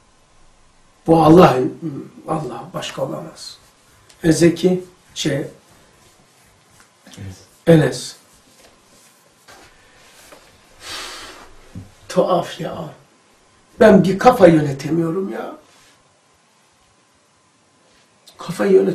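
An elderly man speaks calmly and closely, with pauses.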